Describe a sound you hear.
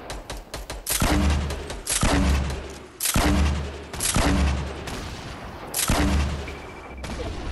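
Loud explosions boom again and again, each followed by a rumbling roll.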